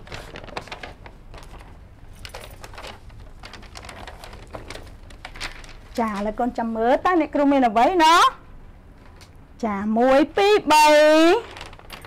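Paper rustles as a young woman handles a sheet.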